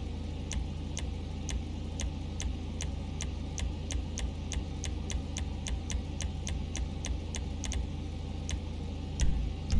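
A game menu clicks quickly and steadily as the selection moves.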